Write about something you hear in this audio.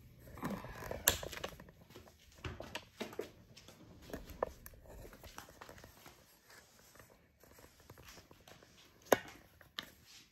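Bare feet pad softly across a hard floor.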